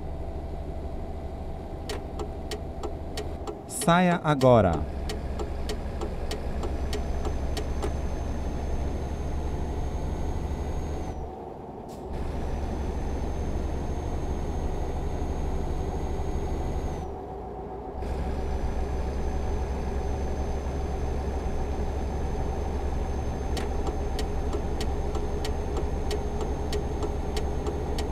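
A truck engine drones steadily, dipping briefly at gear changes.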